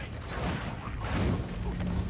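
A burst of flame whooshes.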